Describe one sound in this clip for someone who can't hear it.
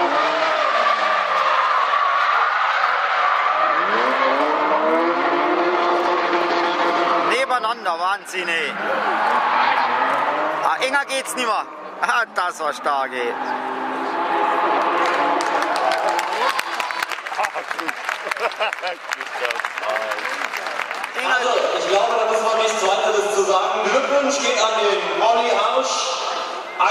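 Racing car engines rev hard and roar.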